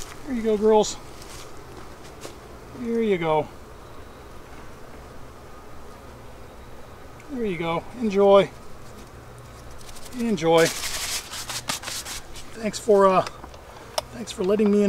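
A man speaks calmly in short phrases, close by.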